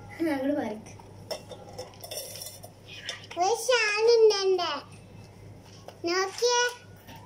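A young girl speaks and sings playfully close by.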